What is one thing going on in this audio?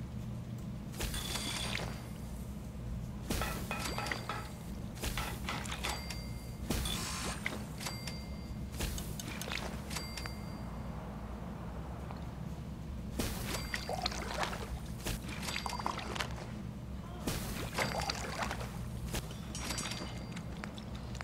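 Short electronic clicks and beeps sound in quick bursts.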